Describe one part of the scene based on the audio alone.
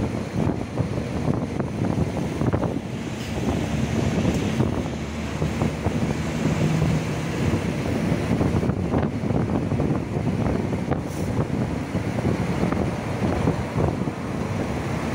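Traffic rumbles steadily along a busy road, heard from inside a moving vehicle.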